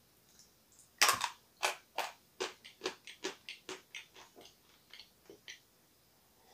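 A young man crunches and chews food.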